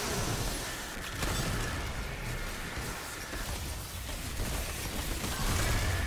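Electric blasts crackle and explode in a video game.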